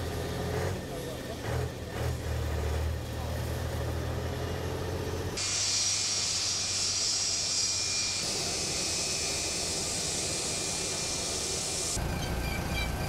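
A jet airliner's engines roar as it rolls down a runway.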